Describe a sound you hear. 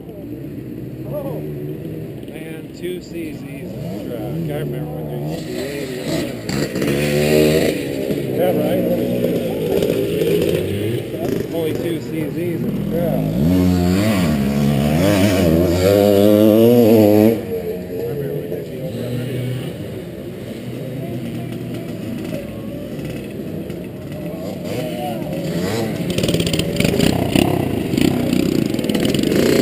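Motorcycle engines idle and rev nearby, outdoors.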